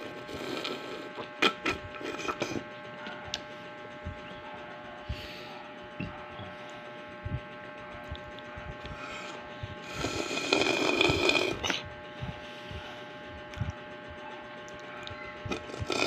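A plastic cup rattles and taps in a hand.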